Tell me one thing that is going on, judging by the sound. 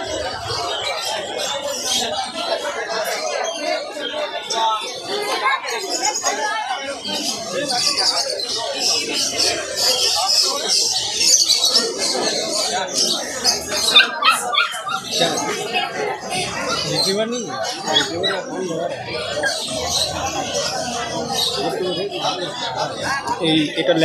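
A puppy crunches and chews dry food close by.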